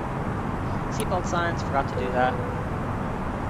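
A young man speaks briefly and casually into a microphone.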